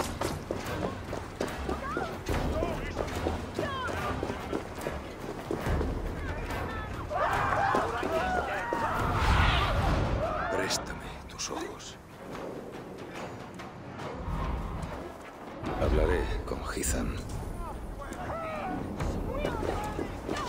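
Footsteps patter quickly over cobblestones.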